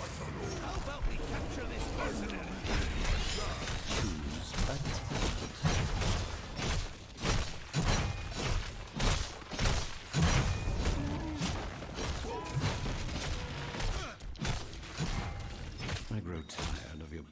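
Video game battle effects whoosh and clash.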